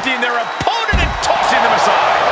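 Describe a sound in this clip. A wrestler lands with a heavy thud after being thrown down.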